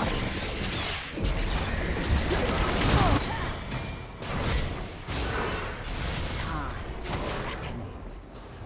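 Game spell effects and impacts crash and whoosh during a fight.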